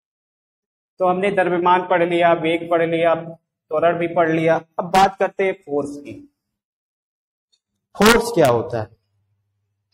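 A young man speaks calmly and explains, close by.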